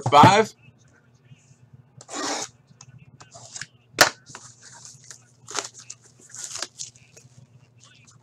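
A cardboard box scrapes and taps as hands turn it.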